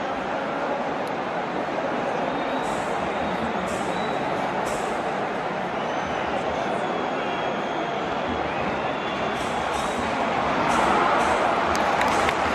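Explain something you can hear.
A large stadium crowd roars and chants steadily in a wide open space, swelling louder near the end.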